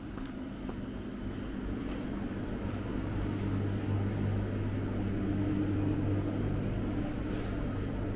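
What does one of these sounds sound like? Refrigerated display cases hum steadily.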